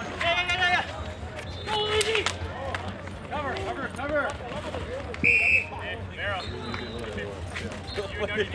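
Spectators and players shout and cheer outdoors.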